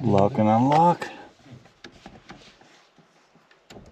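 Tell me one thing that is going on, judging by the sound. A button on a car dashboard clicks as a finger presses it.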